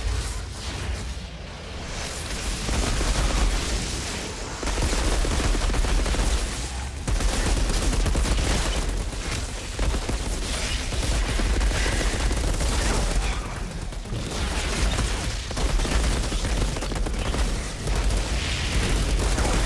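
Gunfire and blasts crackle rapidly in a game fight.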